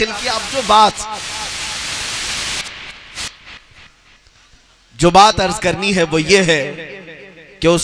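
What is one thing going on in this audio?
A man recites loudly and with passion through a microphone and loudspeakers.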